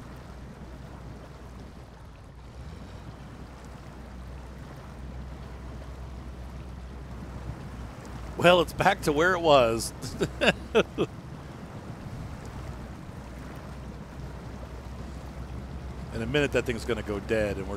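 A truck engine rumbles low and steady while driving through water.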